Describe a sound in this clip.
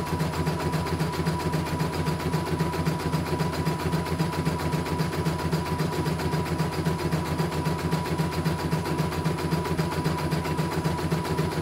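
An embroidery machine stitches with a rapid, steady clatter and motor hum.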